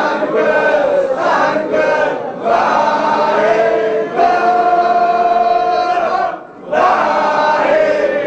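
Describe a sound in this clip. A man sings a slow hymn with long held notes.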